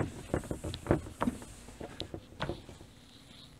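A cloth rubs across a board.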